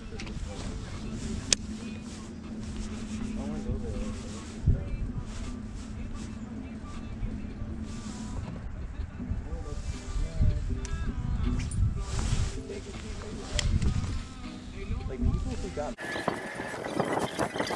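A fishing reel whirs as its line is wound in.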